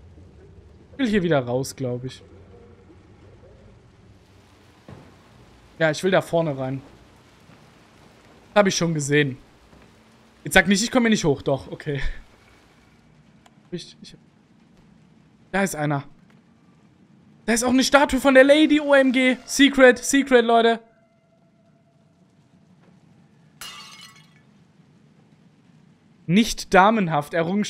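A young man talks with animation in short bursts, close to a headset microphone.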